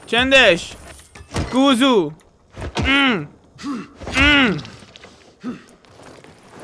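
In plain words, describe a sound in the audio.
A young man shouts with excitement into a close microphone.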